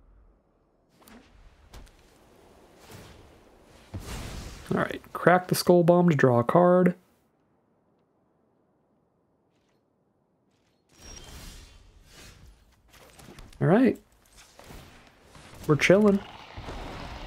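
Soft electronic whooshes and chimes sound as game cards are played.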